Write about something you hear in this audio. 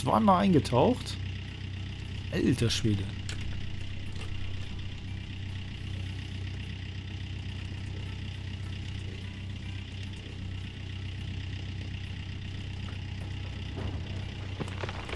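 A diesel engine hums steadily with a low drone.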